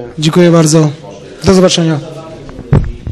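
A man speaks close into a microphone.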